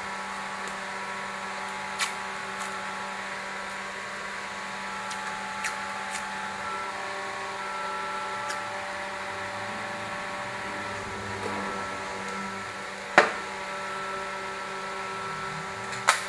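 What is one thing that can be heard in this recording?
Tape crackles as hands press it onto cardboard.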